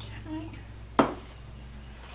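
A spatula knocks against a glass bowl.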